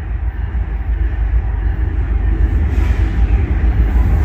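A train locomotive approaches with a growing rumble.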